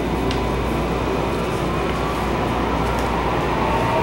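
Train wheels screech and whine on the rails.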